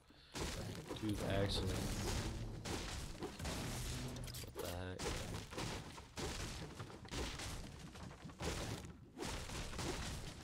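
A pickaxe strikes wooden furniture with sharp knocks.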